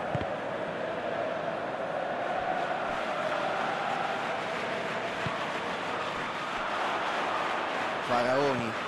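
A stadium crowd roars in the background.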